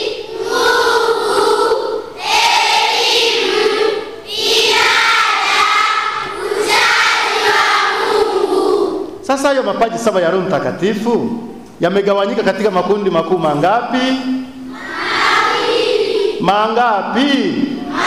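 A large group of children sings together in an echoing hall.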